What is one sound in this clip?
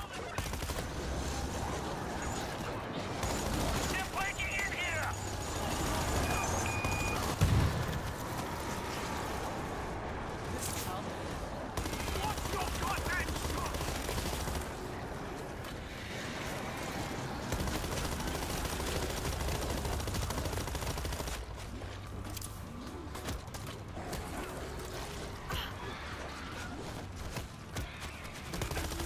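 Rifle gunfire rattles in rapid bursts.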